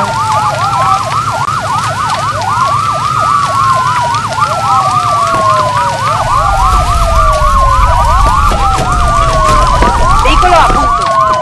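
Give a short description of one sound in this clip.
Several sirens wail and overlap, rising and falling quickly.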